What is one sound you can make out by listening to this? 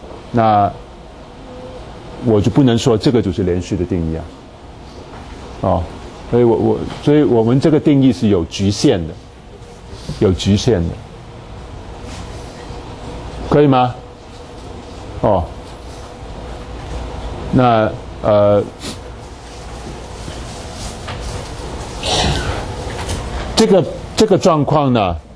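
A middle-aged man lectures calmly through a clip-on microphone, with pauses.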